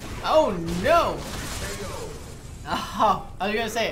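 Punches and kicks land with sharp smacks in a fighting video game.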